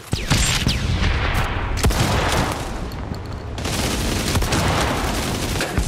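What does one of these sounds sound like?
A submachine gun fires short bursts of shots close by.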